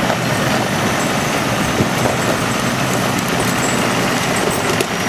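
A heavy truck engine rumbles steadily as the truck slowly pulls a load.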